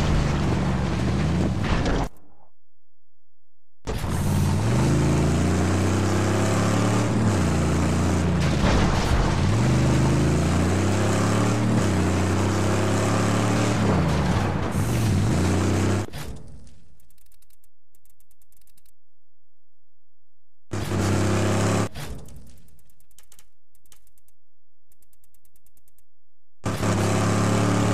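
A car engine roars and revs, rising and falling in pitch.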